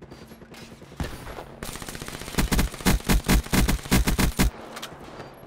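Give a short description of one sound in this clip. A rapid burst of automatic gunfire rattles loudly.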